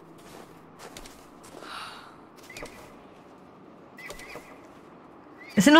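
Footsteps crunch softly in snow.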